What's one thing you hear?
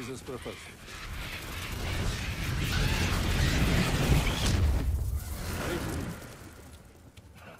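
A deep magical rush swells and fades.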